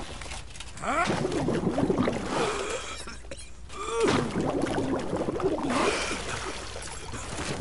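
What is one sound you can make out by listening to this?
A man shouts and groans in pain.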